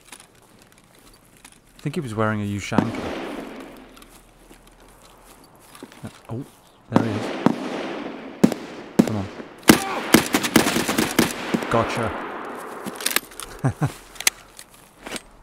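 Footsteps crunch through grass and gravel.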